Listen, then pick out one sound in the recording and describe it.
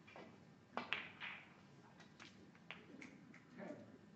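A snooker cue strikes the cue ball with a sharp click.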